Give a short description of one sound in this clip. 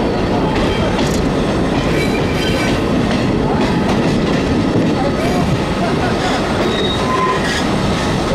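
Wheels clatter over rail joints and points.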